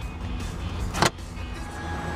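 A glove box latch clicks open.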